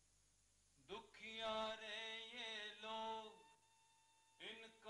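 A man sings with feeling.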